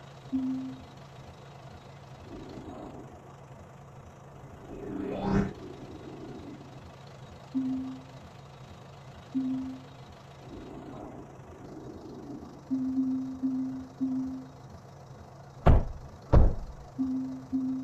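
Short electronic tones blip now and then.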